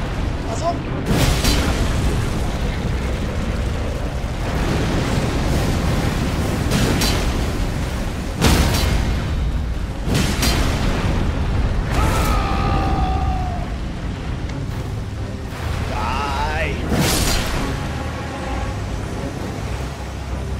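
A sword clangs and slashes against a dragon's scales.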